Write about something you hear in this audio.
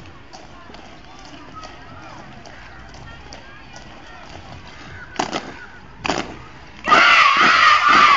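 Boots stamp on pavement in a steady marching rhythm.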